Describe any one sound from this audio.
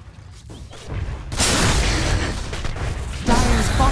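Game battle effects clash and burst loudly.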